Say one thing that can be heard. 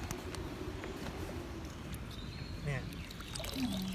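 Water splashes and sloshes as a paddle dips into it.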